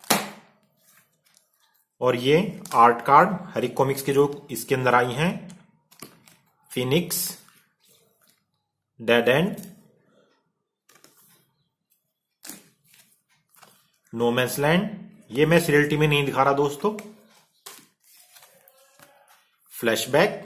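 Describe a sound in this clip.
Cardboard cards rub and tap together.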